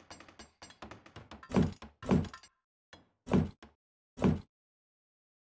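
Heavy blasts boom in quick bursts.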